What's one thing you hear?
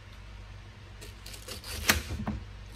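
A knife cuts through a pineapple.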